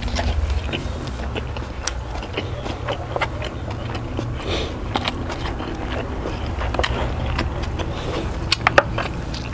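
Fingers pick at food, making soft sticky clicks close to a microphone.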